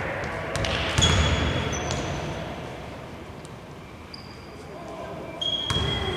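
Sneakers squeak sharply on a wooden court in a large echoing hall.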